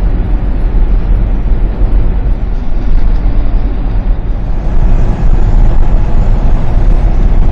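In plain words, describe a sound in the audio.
Wind rumbles loudly against the car.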